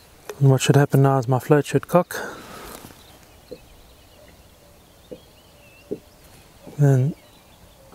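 A man speaks nearby in short bursts.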